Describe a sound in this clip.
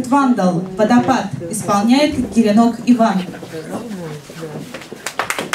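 A young woman announces through a microphone in a clear, measured voice.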